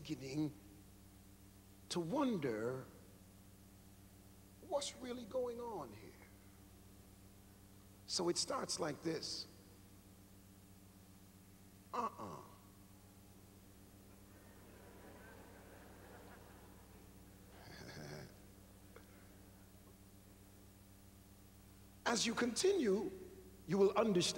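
A man preaches with animation into a microphone, in bursts with pauses, in a large echoing hall.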